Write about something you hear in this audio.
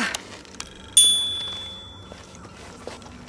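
A bright chime rings once and fades.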